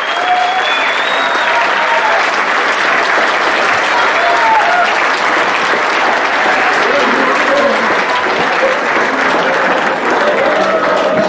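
A crowd of people chatter loudly in a large echoing hall.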